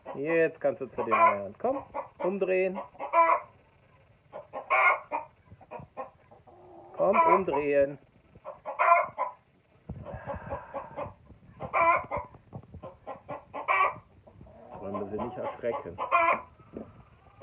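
A rooster clucks and squawks close by in bursts.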